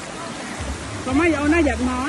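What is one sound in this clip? Water laps and splashes as children play in it.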